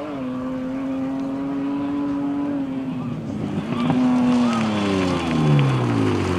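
A rally car engine roars at high revs as the car speeds past.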